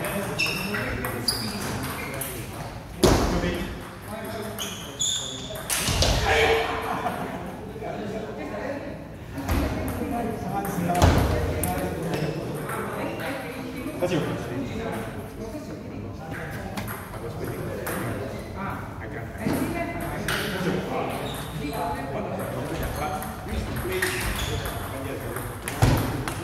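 A table tennis ball clicks back and forth between paddles and the table in a hall.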